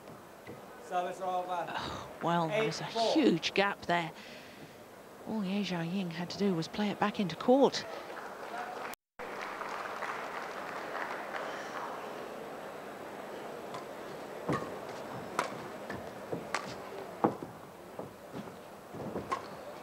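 A racket strikes a shuttlecock with sharp, quick taps in a large hall.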